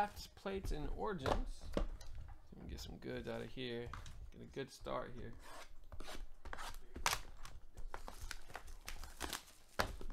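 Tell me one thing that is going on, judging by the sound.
Shrink-wrapped cardboard boxes are shuffled and crinkle against each other.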